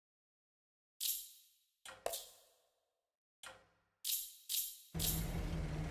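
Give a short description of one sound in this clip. Menu clicks sound in short bursts.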